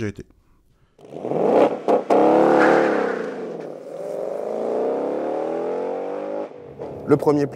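A car engine roars as the car accelerates away and fades.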